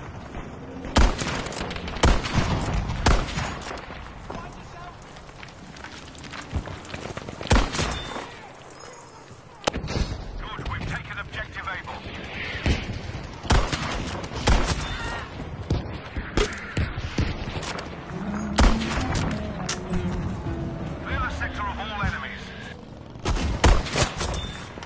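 A bolt-action rifle fires sharp, cracking shots.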